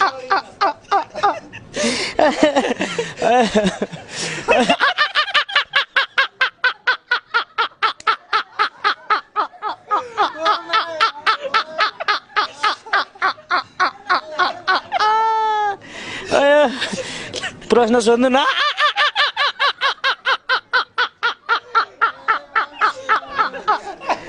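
A young man laughs loudly and uncontrollably, close to a microphone.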